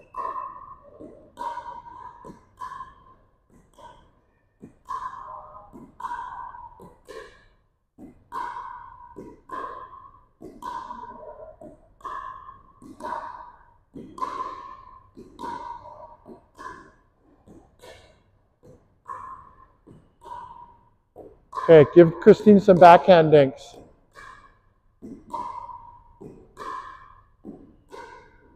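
Paddles strike a plastic ball with sharp hollow pops in a large echoing hall.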